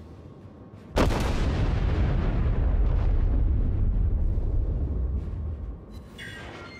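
Heavy naval guns fire a thunderous salvo that rumbles and slowly fades.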